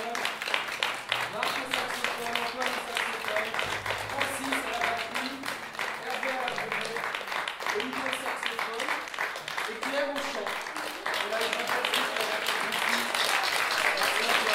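A small band of saxophones, trombones and electric guitar plays a lively tune in an echoing hall.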